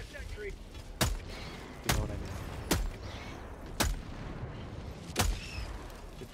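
A rifle fires single sharp shots.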